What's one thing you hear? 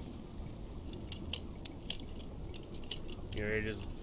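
A metal pick clicks and scrapes inside a door lock.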